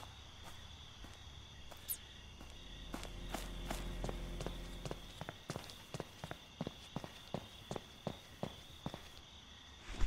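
Footsteps tap on pavement.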